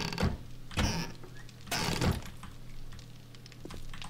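A refrigerator door is pulled open.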